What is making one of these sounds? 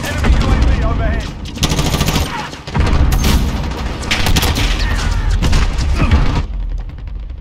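Rapid gunshots fire loudly in bursts.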